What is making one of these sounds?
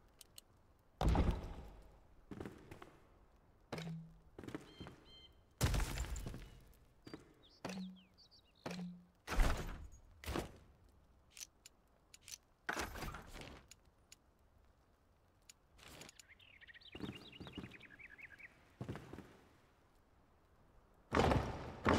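Heavy stone blocks thud into place, one after another.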